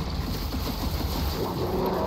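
An electric beam crackles and zaps.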